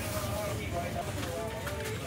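A plastic bottle on a shelf clinks softly.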